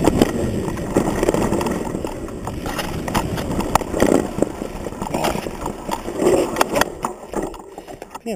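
A mountain bike rolls over a dirt trail.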